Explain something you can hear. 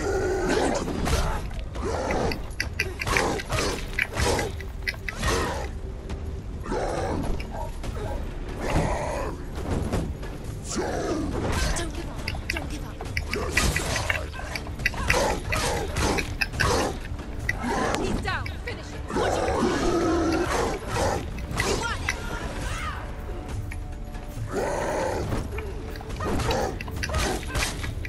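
Swords clash and slash with sharp metallic strikes.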